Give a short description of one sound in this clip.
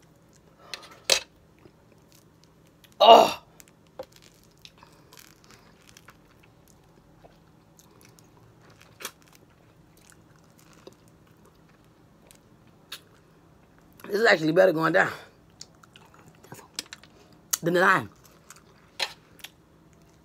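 Food crunches and clicks close up as it is bitten.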